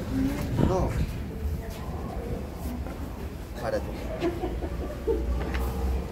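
A young woman talks to a man up close.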